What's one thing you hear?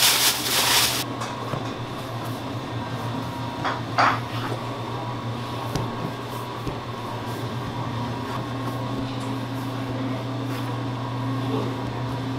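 A knife cuts through a soft block with soft taps on a cutting board.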